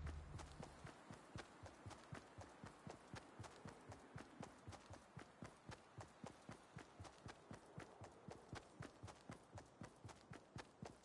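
Quick footsteps patter steadily over grass.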